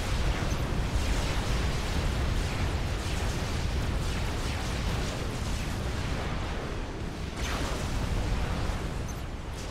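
Gunfire and explosions rumble steadily in a battle.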